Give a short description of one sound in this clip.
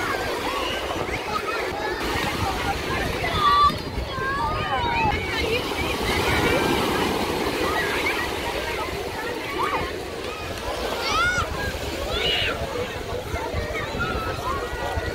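A crowd of children and adults shouts and chatters all around outdoors.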